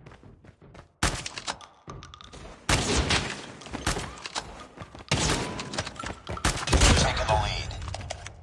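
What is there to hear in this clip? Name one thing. A rifle fires in rapid loud bursts.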